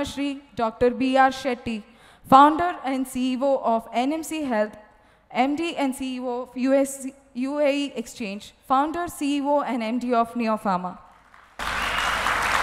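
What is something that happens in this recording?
A young woman speaks calmly through a microphone in a large hall.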